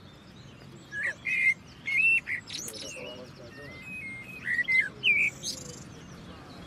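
A bird sings close by in clear, fluting phrases with short pauses.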